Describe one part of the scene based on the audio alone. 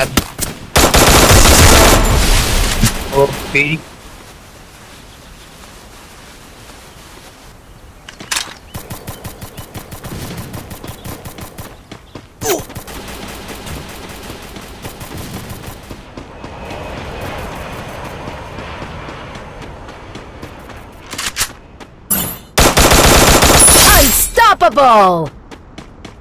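Rapid gunfire rings out in loud bursts.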